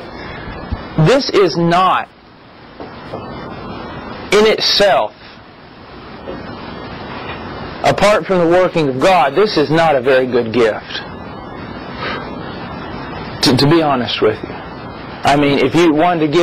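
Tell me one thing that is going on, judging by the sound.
A man speaks calmly and thoughtfully close to a microphone, in bursts with pauses.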